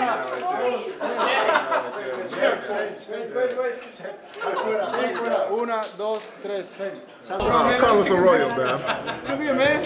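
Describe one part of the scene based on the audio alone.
Young men talk and laugh loudly, close by, in an echoing room.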